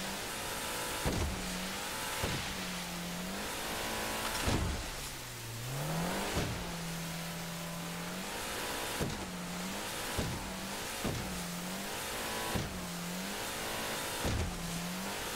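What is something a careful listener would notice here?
A boat engine drones and revs as it races over choppy water.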